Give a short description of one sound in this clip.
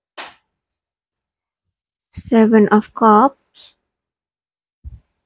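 Playing cards slide and tap softly against one another.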